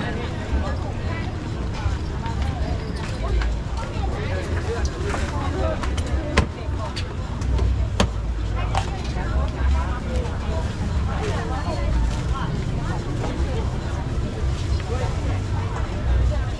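A crowd murmurs at a busy outdoor market.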